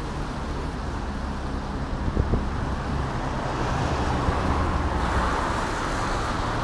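Traffic rumbles past on a wet street.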